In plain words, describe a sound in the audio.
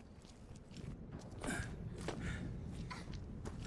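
Footsteps splash on wet ground.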